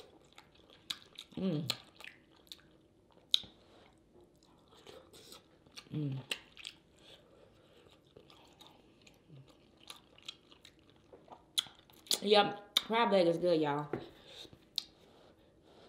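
Shrimp shells crack and snap between fingers.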